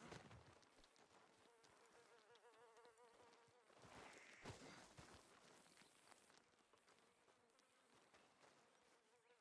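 Hooves clop on rocky ground as a horse walks.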